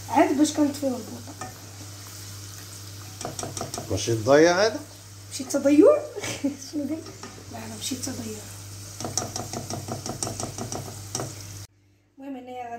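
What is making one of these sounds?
Oil sizzles in a pot.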